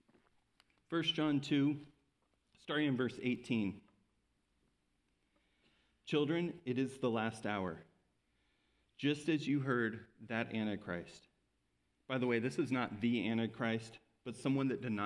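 A man speaks calmly through a microphone, in short phrases with pauses.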